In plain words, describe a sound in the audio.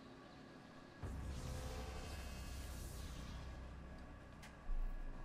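A loud, rushing energy whoosh starts suddenly and hums on.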